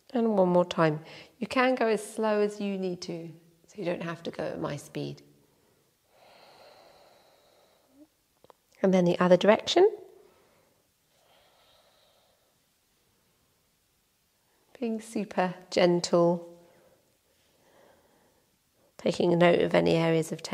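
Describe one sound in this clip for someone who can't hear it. A young woman speaks calmly and slowly, close to a microphone, with long pauses.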